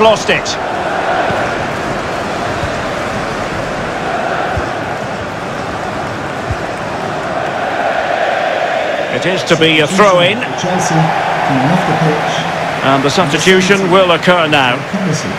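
A large crowd murmurs and roars steadily in a big stadium.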